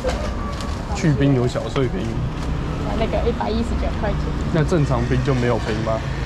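A young woman talks close by in a lively voice.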